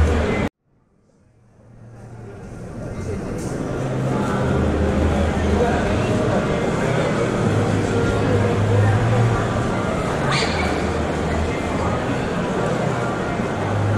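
A knife slices through crisp roast pork.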